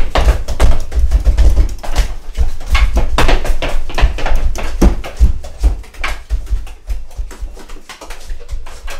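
Bare feet thump and shuffle on a wooden floor.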